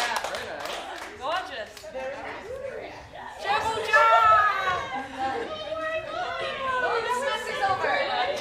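Young adults chat on a stage.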